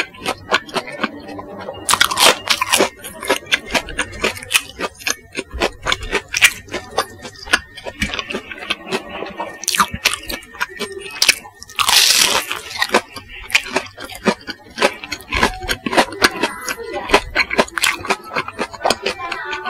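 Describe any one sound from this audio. Crispy fried food crunches loudly close to a microphone.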